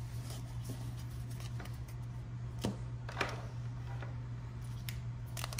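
Card packaging crinkles and rustles in hands.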